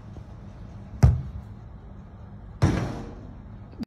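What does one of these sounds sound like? A football is kicked hard and thumps loudly.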